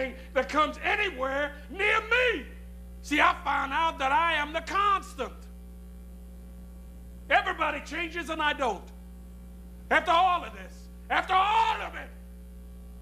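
A middle-aged man speaks close by in an intense, emotional voice.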